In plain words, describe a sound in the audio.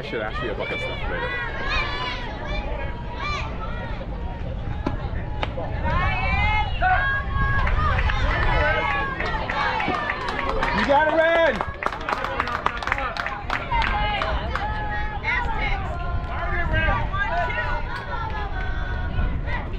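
Young girls chant and cheer loudly nearby.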